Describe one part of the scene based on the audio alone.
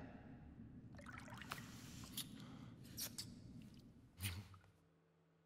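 A woman whispers softly close by.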